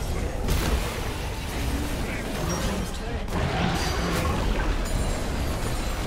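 A turret crumbles with a heavy crash.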